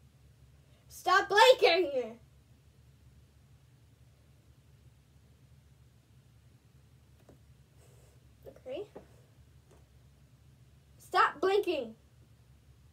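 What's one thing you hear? A young girl talks close by in short bursts.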